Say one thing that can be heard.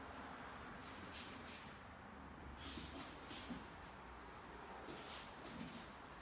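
Bare feet thump and slide on a padded floor.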